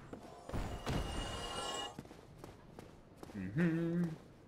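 Armoured footsteps clank on wood and stone.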